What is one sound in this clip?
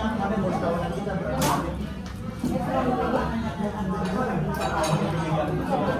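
Metal cutlery scrapes and clinks against a plate.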